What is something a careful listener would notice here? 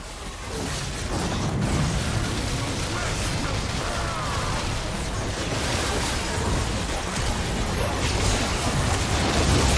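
Fantasy game spells whoosh and crackle during a fight.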